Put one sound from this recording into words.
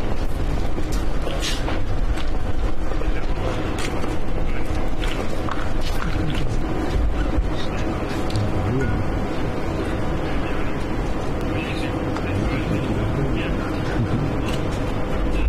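A crowd of men murmurs and chats nearby outdoors.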